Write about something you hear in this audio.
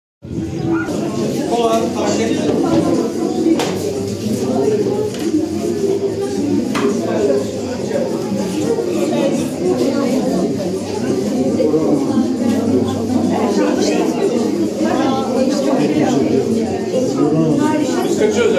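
An elderly woman speaks calmly, close by.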